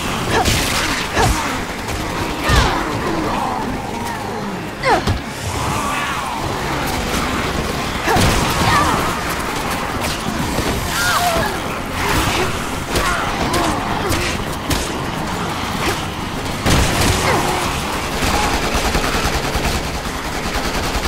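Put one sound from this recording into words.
Zombies groan and growl.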